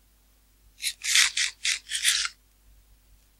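A block crunches several times as it is dug out.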